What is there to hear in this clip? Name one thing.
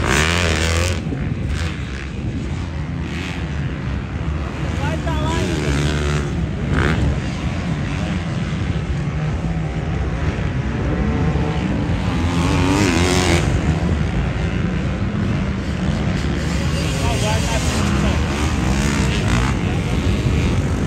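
Dirt bike engines whine in the distance, rising and falling.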